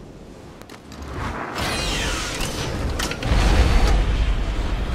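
A small rocket engine whooshes into life.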